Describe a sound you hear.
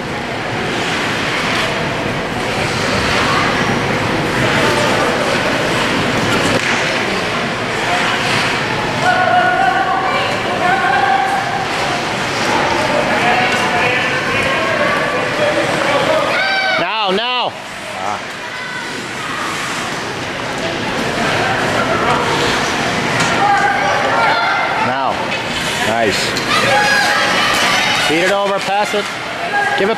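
A crowd of spectators chatters and cheers in a large echoing rink.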